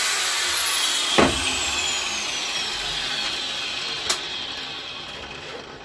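A power tool whines as it slowly winds down.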